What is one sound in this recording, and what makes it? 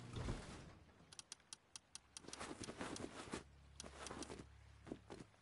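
Short menu clicks tick in quick succession.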